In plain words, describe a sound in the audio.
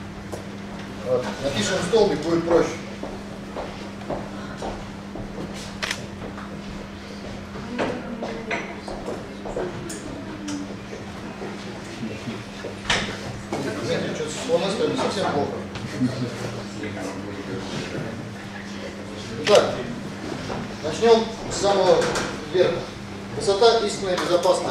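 A man lectures, speaking calmly.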